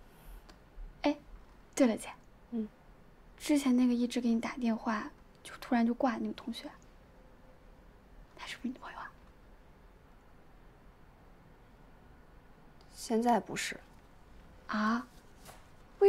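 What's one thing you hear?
Another young woman answers softly nearby.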